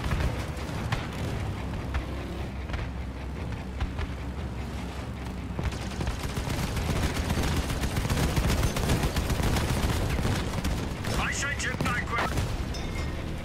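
An armoured vehicle's engine rumbles steadily as it drives over rough ground.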